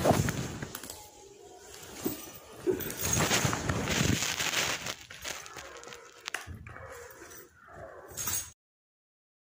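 Clothing rustles and bodies bump in a scuffle close by.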